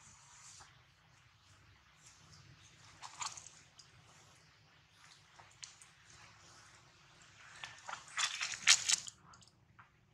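Monkeys softly rustle fur while grooming.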